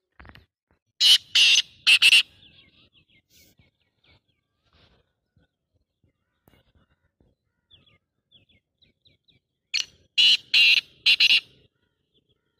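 A bird sings loud, shrill bursts of song close by.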